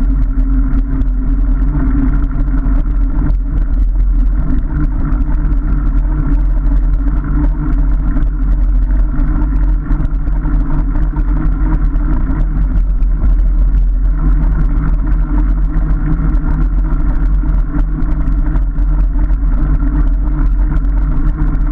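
Bicycle tyres roll steadily over a rough paved path.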